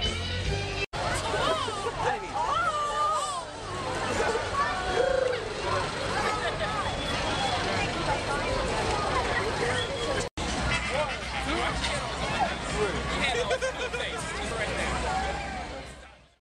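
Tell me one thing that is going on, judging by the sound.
A crowd of adults chatters and cheers loudly outdoors.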